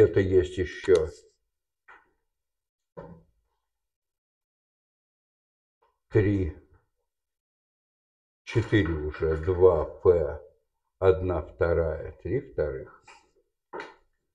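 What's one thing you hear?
A man speaks calmly in a lecturing tone, close by.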